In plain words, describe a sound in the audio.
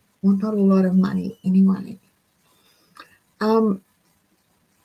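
An older woman speaks calmly over an online call.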